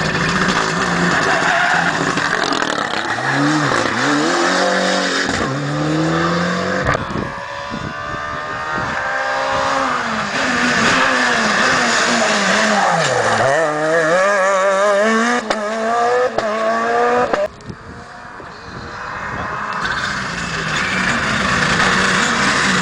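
A rally car engine roars and revs hard as the car speeds past and accelerates away through the gears.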